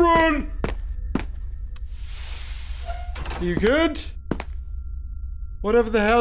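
A man shouts and exclaims loudly with alarm into a close microphone.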